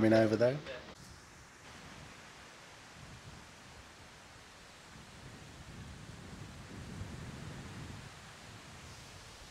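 Wind blows through tall grass and leaves outdoors.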